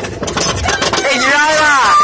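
Riders scream as a roller coaster car tips over the top.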